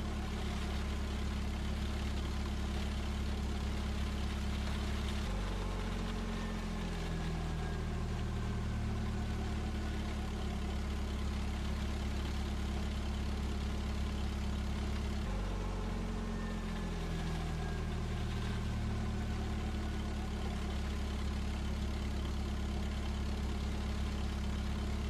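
Steam hisses steadily from vents.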